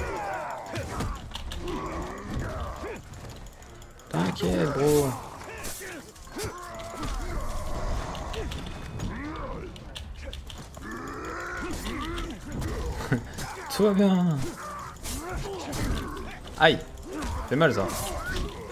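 A young man talks with animation into a microphone, close up.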